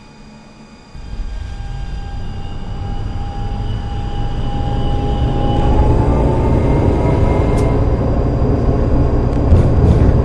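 Tram wheels rumble and clatter over the rails.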